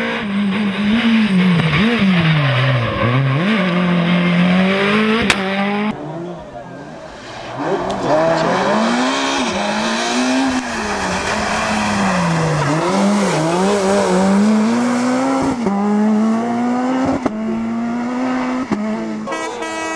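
A rally car engine revs hard, rising and falling in pitch as the car speeds past.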